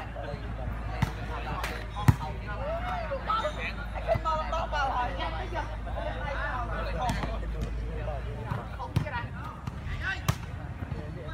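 A volleyball thumps off players' hands.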